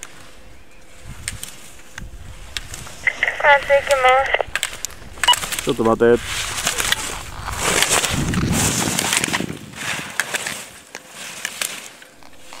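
Skis carve and scrape across hard snow.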